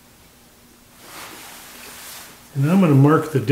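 A metal tool rest scrapes as it is moved.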